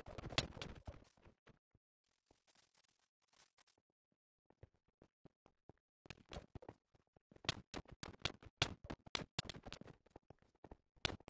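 Blocks of stone crunch and crack as they are dug out in a video game.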